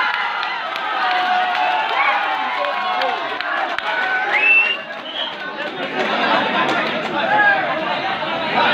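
A large outdoor crowd shouts and cheers.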